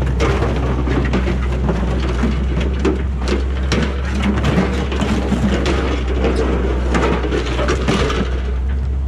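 Debris crashes and clatters as an excavator grapple drops it onto a pile.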